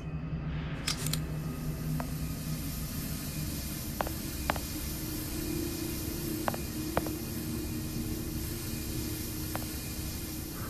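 Steam hisses steadily.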